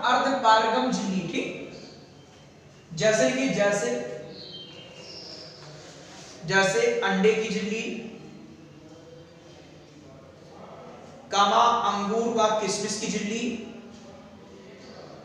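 A man lectures loudly in short bursts, his voice echoing in a bare room.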